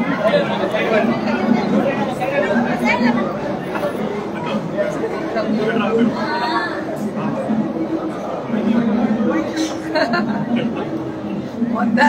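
A middle-aged woman speaks cheerfully nearby.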